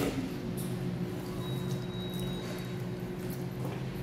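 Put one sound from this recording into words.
Water trickles from a tap.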